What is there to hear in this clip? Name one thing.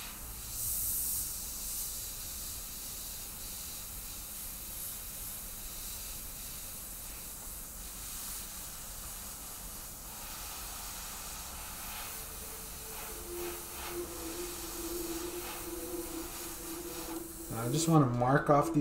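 An airbrush hisses steadily with a soft spray of air.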